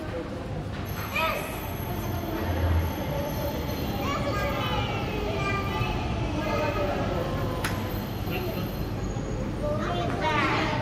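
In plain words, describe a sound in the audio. A shuttle train hums as it rolls in and stops.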